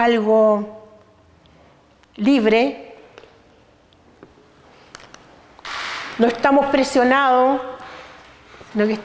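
A middle-aged woman speaks calmly and close by, in short phrases.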